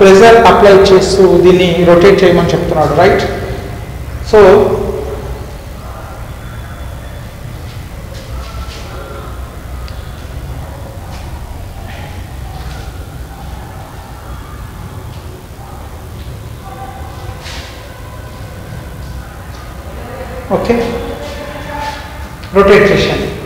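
A man speaks calmly and clearly nearby.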